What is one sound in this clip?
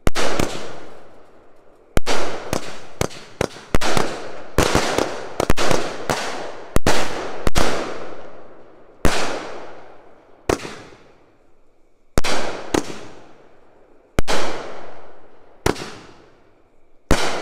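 Fireworks crackle and fizz after each burst.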